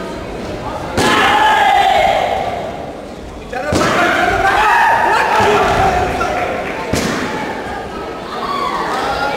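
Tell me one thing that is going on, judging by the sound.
A crowd cheers and shouts in an echoing sports hall.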